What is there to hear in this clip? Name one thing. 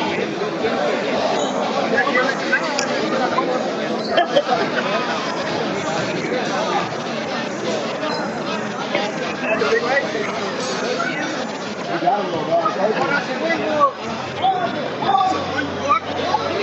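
A crowd of spectators chatters loudly in an echoing indoor hall.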